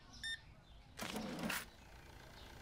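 A cash register drawer slides open.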